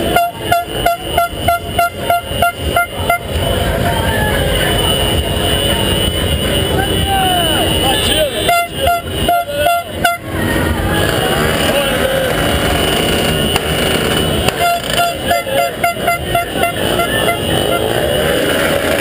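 Car horns honk in a quick repeating rhythm.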